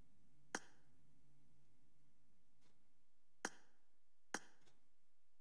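A menu click sounds sharply a few times.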